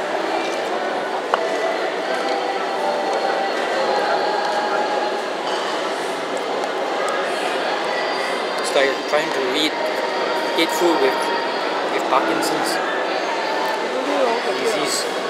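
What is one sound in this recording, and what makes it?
A busy crowd murmurs and chatters in the background.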